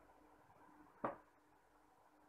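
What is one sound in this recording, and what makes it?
A metal spoon taps once on a hard surface.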